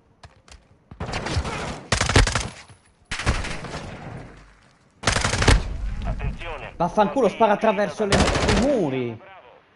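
Automatic gunfire rattles in loud bursts.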